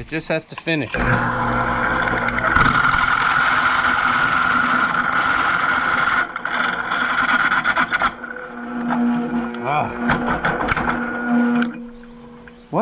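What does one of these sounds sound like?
A drill press whines steadily as its bit grinds into metal.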